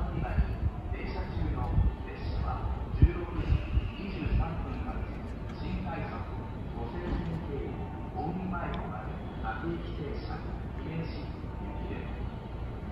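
A train rumbles slowly toward the station in the distance.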